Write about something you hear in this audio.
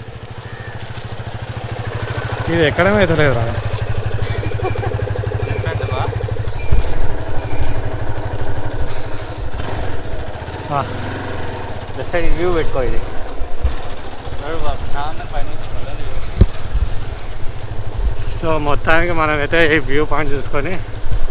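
A motorcycle engine runs with a low, steady putter.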